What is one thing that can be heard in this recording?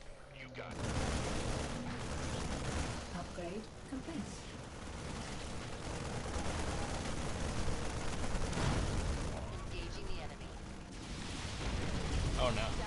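Rapid gunfire rattles in a noisy battle.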